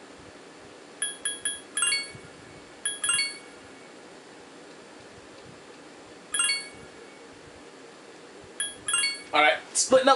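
Short electronic menu chimes beep now and then.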